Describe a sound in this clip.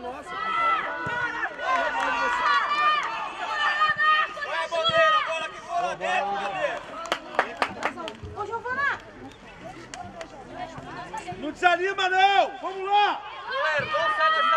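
A football is kicked on a grass pitch outdoors.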